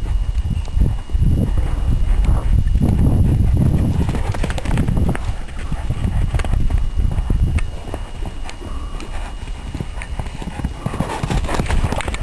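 A horse's hooves thud on soft dirt as it runs.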